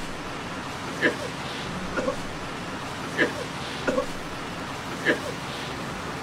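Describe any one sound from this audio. A man coughs into his hand nearby.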